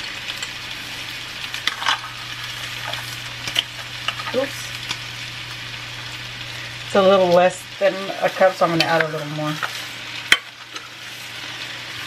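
Dry rice pours and rattles into a metal pot.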